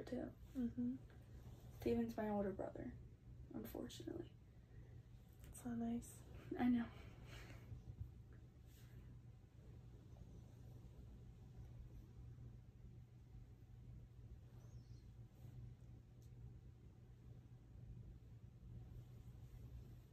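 Hands rub and press gently on skin.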